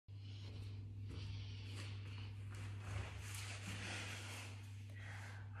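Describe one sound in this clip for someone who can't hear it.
Clothing rustles as a person sits down on a mat.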